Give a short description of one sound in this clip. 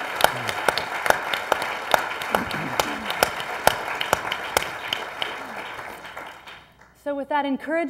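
An audience applauds in a hall, then the clapping fades away.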